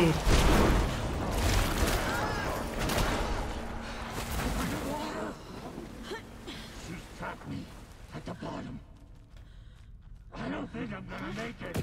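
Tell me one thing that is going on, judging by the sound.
A young man talks calmly into a close microphone.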